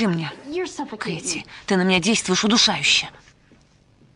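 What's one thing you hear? A young woman speaks loudly and with animation.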